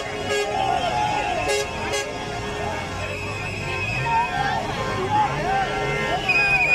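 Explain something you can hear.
A crowd of men shouts and talks excitedly outdoors.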